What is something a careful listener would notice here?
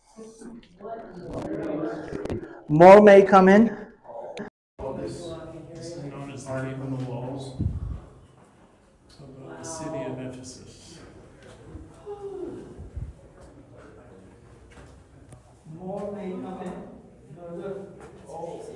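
A man talks nearby calmly.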